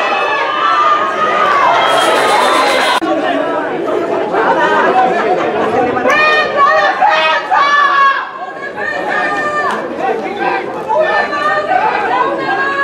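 A crowd of young men shouts and cheers outdoors.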